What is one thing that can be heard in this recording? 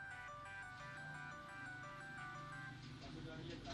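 A phone plays a short bright startup melody.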